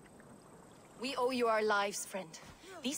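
A woman speaks warmly and calmly.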